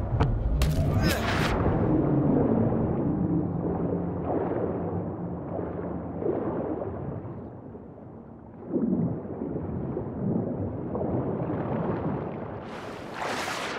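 Water gurgles and swirls underwater.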